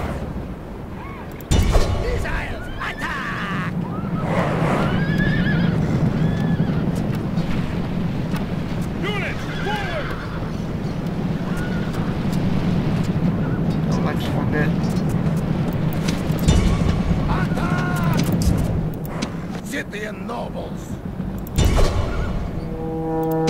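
Massed troops tramp and clatter across open ground.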